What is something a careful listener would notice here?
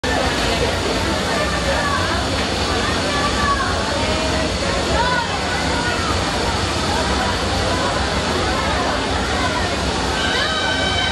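Men and women in the crowd call out and shout with excitement.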